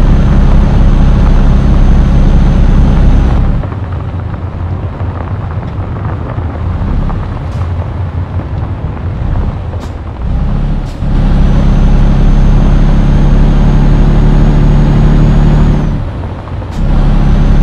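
A diesel truck engine drones, rising and falling as it pulls.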